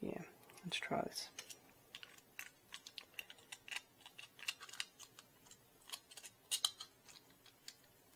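Small 3D-printed plastic parts click and tap as they are fitted together by hand.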